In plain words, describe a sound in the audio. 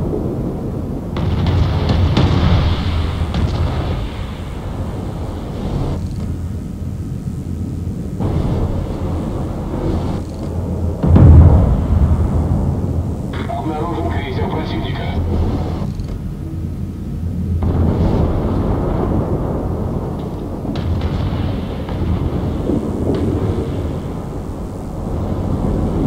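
Water splashes and rushes past a ship's hull.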